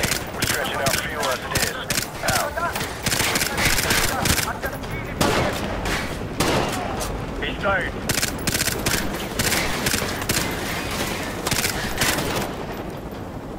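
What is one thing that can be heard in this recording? Gunshots crack in rapid bursts, echoing between buildings.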